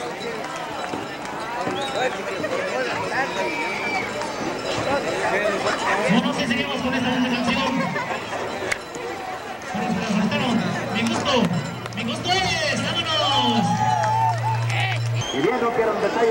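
A large crowd shouts and cheers in an open arena.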